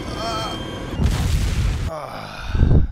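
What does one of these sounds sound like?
A helicopter crashes into the ground with a loud thud.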